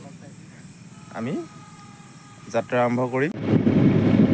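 A young man speaks close by, calmly.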